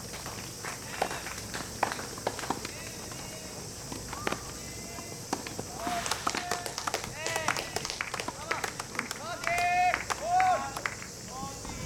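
Tennis balls are hit with sharp pops across outdoor courts.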